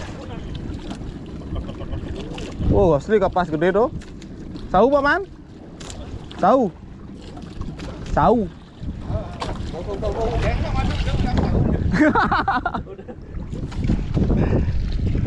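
Waves slosh against the side of a small boat outdoors in wind.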